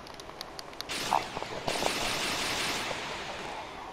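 A synthetic energy blast whooshes and roars.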